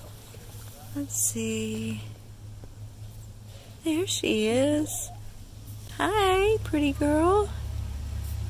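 A rooster crows loudly nearby, several times.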